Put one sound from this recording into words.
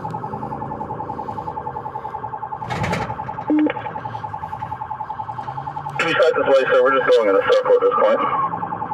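A siren yelps rapidly and steadily.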